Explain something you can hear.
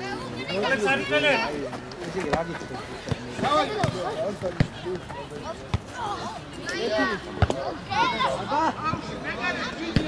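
Young boys shout to each other across an open field.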